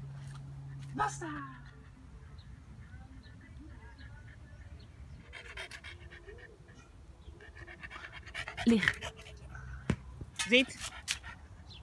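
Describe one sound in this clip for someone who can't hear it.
A small dog barks and yelps in short, sharp bursts.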